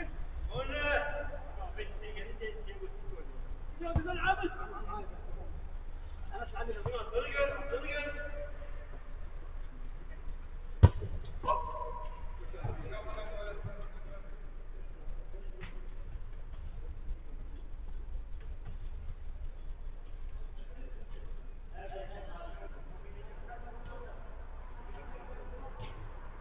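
Young men shout to each other across an echoing indoor pitch.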